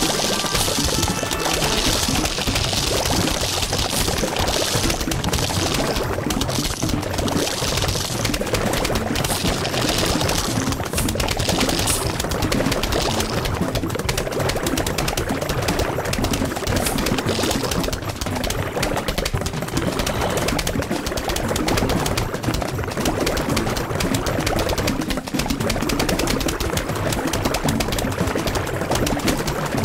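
Cartoon plants rapidly pop and shoot peas.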